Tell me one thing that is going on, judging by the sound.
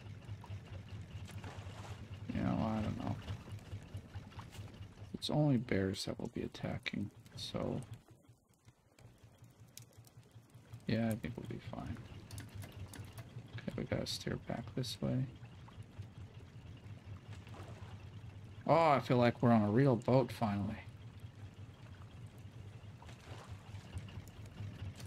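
Sea water laps gently and steadily.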